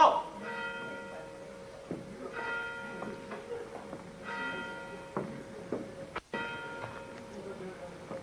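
A telephone rings in repeated bursts.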